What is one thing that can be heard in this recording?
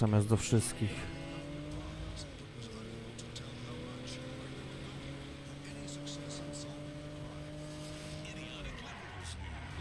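A car engine drones steadily as the car drives along.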